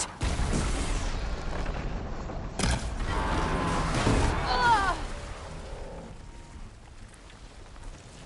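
A bowstring twangs as an arrow is shot.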